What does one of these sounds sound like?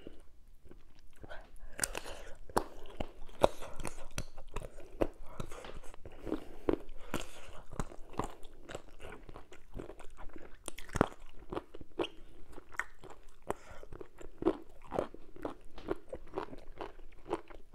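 A woman chews food wetly and smacks her lips close to a microphone.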